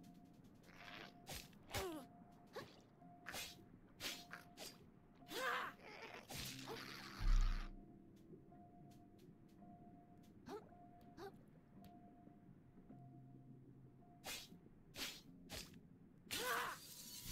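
Game sound effects of fighting hits and swooshes ring out.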